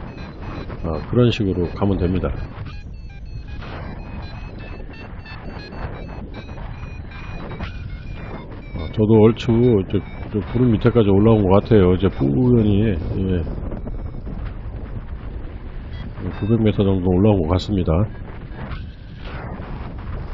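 Wind rushes steadily past, high in the open air.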